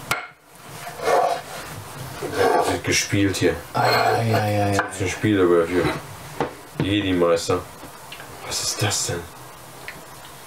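A second man talks and laughs nearby.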